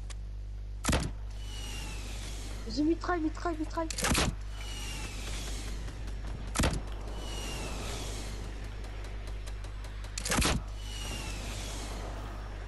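A rocket hisses through the air after each shot.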